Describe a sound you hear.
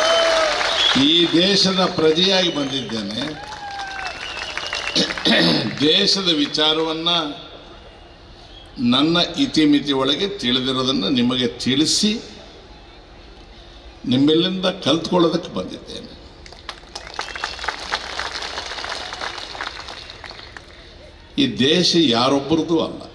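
An elderly man speaks forcefully into a microphone, heard through loudspeakers outdoors.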